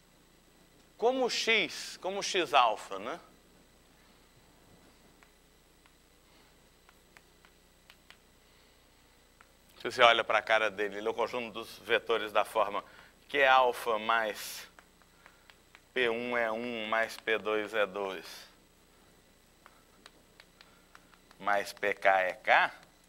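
A man speaks calmly and clearly, as if lecturing.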